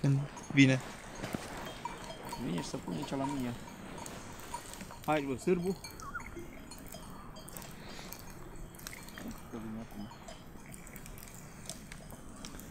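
A campfire crackles and pops.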